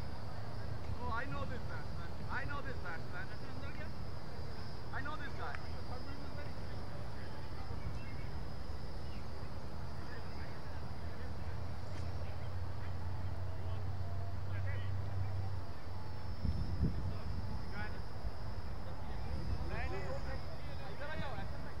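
Men call out to each other across an open field, far off.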